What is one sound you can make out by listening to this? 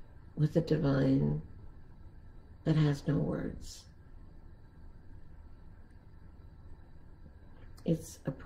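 An elderly woman speaks calmly and slowly, close to a microphone, with long pauses.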